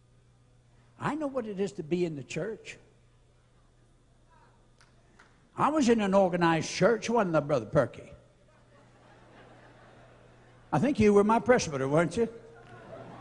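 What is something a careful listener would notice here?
An elderly man preaches forcefully through a microphone in a large echoing hall, in short bursts with pauses.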